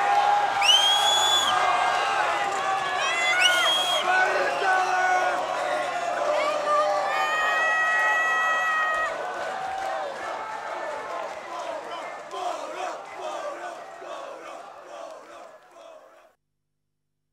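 A large crowd cheers and shouts in a big echoing hall, then fades away.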